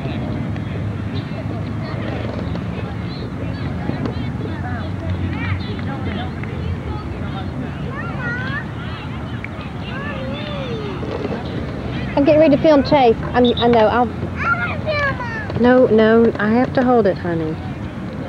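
Children chatter and call out in the distance.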